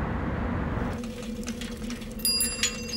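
A bicycle rolls along a street.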